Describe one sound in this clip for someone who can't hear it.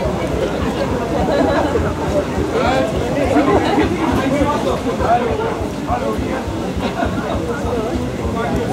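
A crowd of adults chat and talk over one another nearby outdoors.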